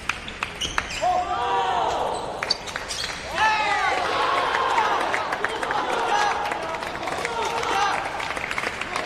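Young men shout and cheer loudly nearby.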